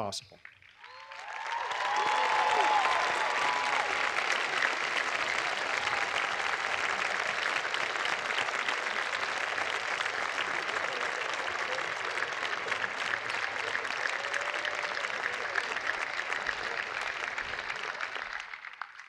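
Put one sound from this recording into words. A large crowd applauds outdoors.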